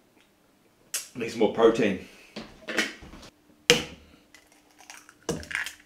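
An egg cracks against a container's edge.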